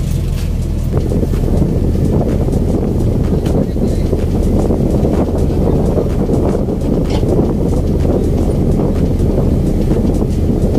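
Water rushes along a boat's hull.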